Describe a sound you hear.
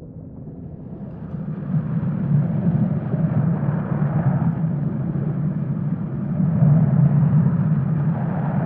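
A glass bowl rolls and rumbles across wooden boards.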